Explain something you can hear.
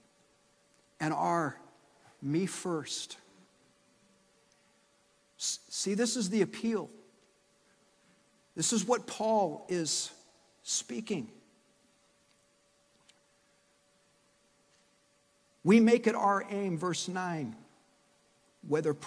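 A man speaks with animation through a microphone in a large echoing hall, pausing between phrases.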